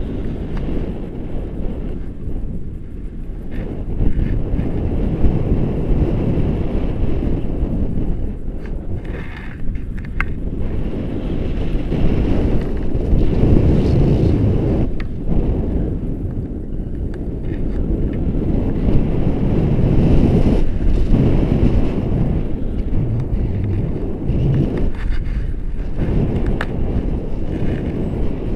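Wind rushes and buffets the microphone.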